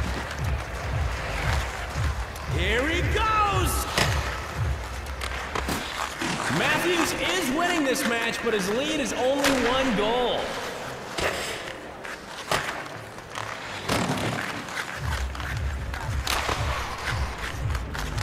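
Skates scrape and swish across ice.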